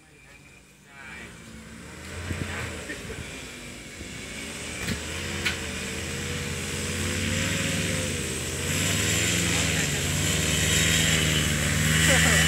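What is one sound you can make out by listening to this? A paramotor engine drones overhead, growing louder as it approaches.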